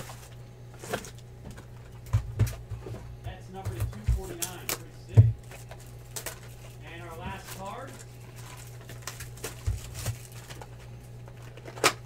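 Cardboard boxes knock and rustle as they are handled.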